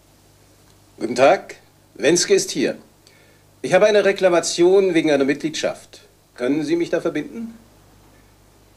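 A man speaks calmly into a telephone nearby.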